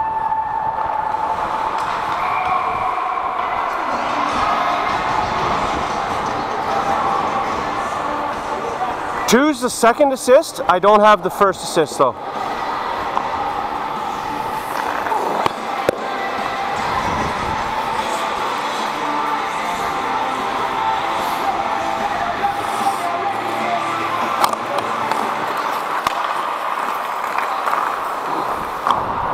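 Players call out to each other in a large echoing rink.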